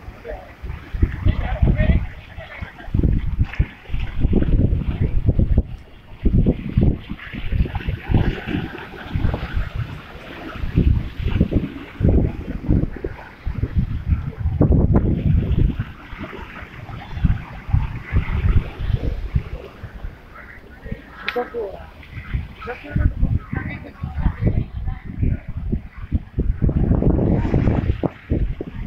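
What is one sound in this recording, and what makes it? Rough water churns and splashes against a wall, outdoors in gusty wind.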